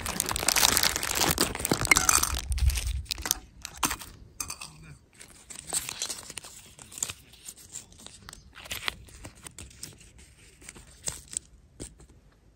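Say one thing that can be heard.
Plastic wrapping crinkles and rustles in someone's hands.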